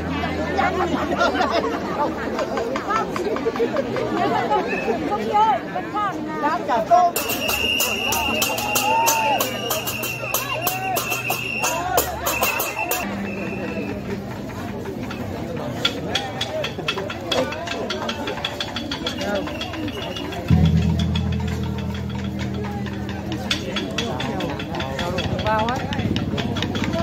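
A large outdoor crowd chatters and shouts excitedly.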